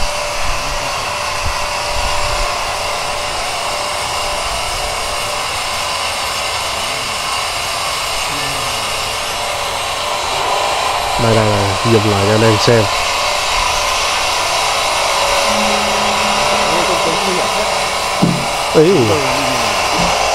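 A large band saw machine runs with a steady whirring drone.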